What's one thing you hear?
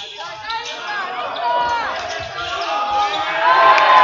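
A crowd cheers louder and louder in an echoing hall.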